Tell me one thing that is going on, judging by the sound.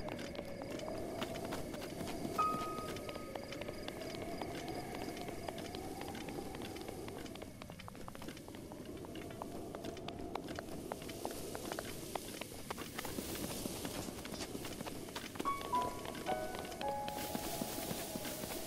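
Footsteps run quickly over rock and grass.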